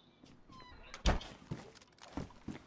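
A plastic crate lid knocks open.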